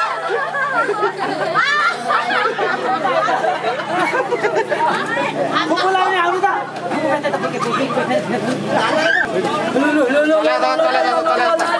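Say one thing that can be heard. Men and women laugh and shout excitedly close by.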